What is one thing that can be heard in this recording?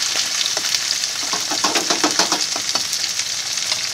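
A metal spoon scrapes and stirs in a frying pan.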